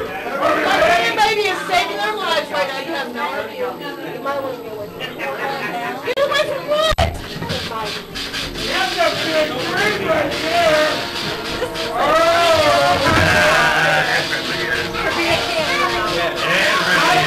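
Several men and women talk and laugh close by.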